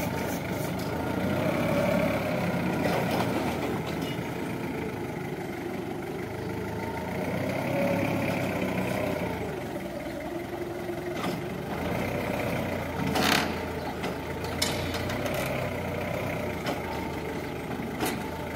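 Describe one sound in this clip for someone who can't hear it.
A forklift engine hums and revs as it drives.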